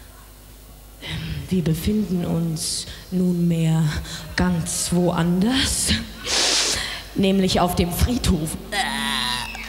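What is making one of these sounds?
A young woman sings loudly into a microphone over a loudspeaker system.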